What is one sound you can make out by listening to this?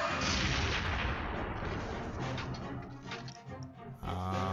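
A large explosion roars and crackles.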